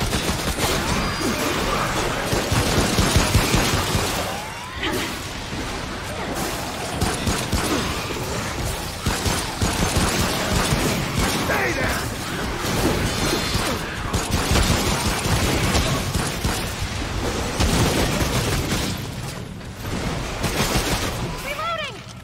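Gunshots fire rapidly in a fierce fight.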